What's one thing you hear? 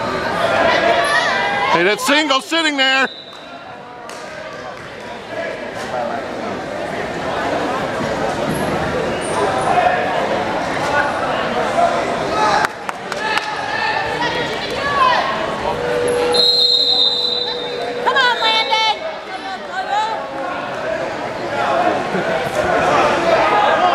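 A crowd of spectators murmurs and calls out in a large echoing gym.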